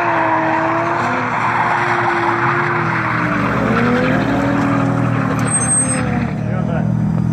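A car engine roars at high revs.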